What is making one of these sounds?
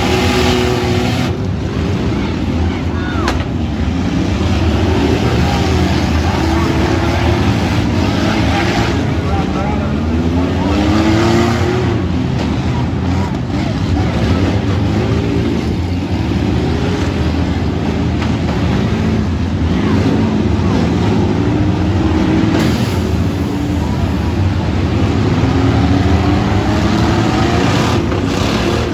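A crowd cheers in a large open arena.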